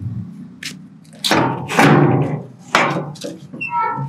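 A metal padlock rattles on a gate.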